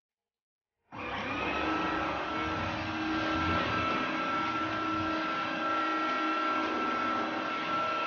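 A floor cleaner motor hums steadily with a whine.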